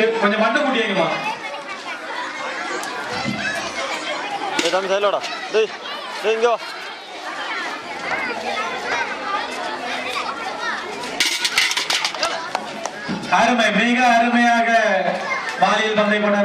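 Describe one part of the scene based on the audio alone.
A crowd of men and women chatter and call out loudly outdoors.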